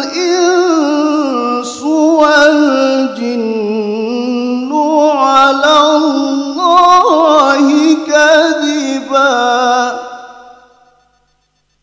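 A man chants melodiously into a microphone.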